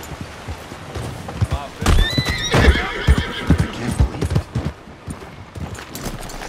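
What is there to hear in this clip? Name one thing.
Horse hooves clop on a dirt track.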